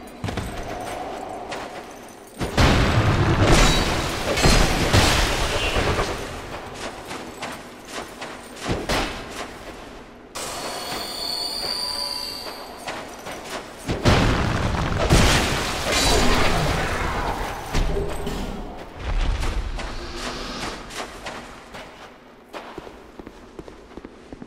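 Footsteps scuff quickly on stone.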